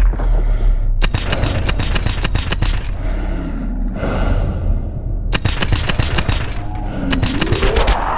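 An automatic rifle fires in rapid, sharp bursts close by.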